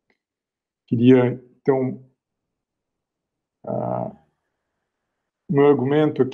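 A man speaks calmly in short bursts through an online call.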